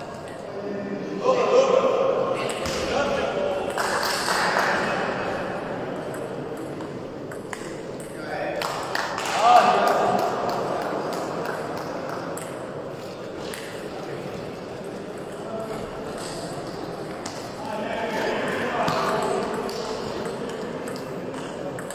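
Men's voices call out and murmur in a large echoing hall.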